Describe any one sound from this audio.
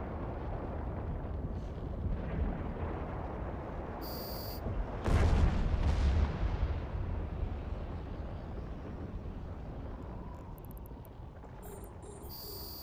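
A spaceship engine rumbles with a deep, steady drone.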